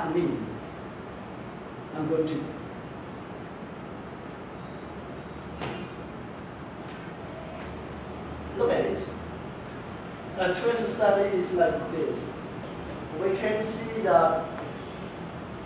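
A man speaks calmly, with pauses between phrases.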